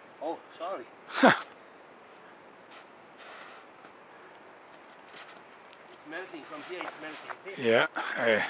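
Shoes crunch and slide on snow.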